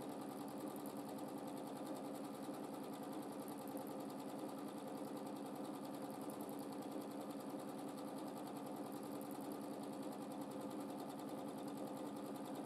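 A sewing machine hums and rattles steadily as its needle stitches quickly.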